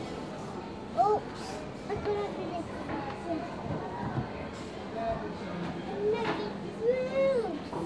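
A toddler babbles and squeals excitedly nearby.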